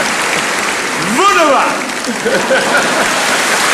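A man laughs and calls out with delight.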